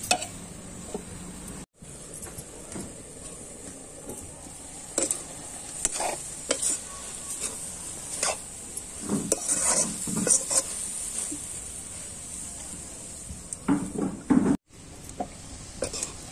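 A metal lid clanks onto a pan.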